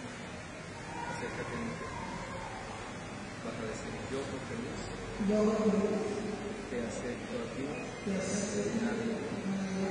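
A young man speaks calmly into a microphone, heard through loudspeakers in an echoing hall.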